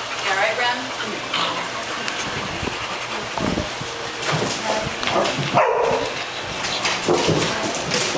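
Dogs bark and yip in short bursts nearby.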